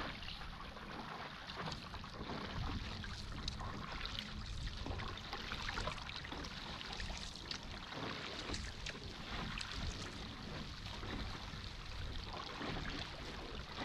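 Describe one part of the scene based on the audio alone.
A boat's motor drones steadily.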